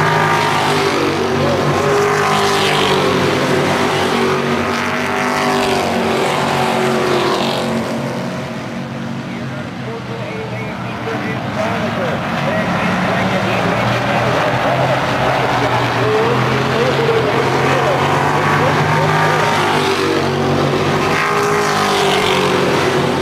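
Race car engines rise and fall in pitch as the cars pass close by.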